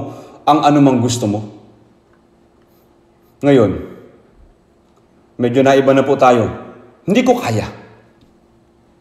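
An elderly man speaks slowly and firmly into a microphone, with pauses between phrases, in a large echoing hall.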